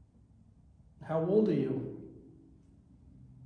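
A man speaks briefly, close by.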